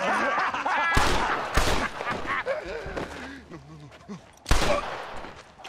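Gunshots ring out sharply several times.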